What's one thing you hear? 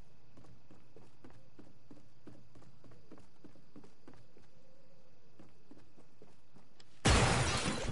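Quick footsteps thud on a wooden floor.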